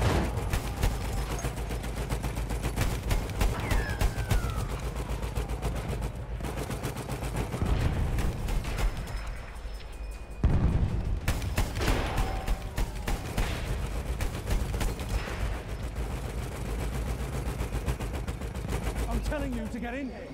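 A heavy machine gun fires in rapid, continuous bursts.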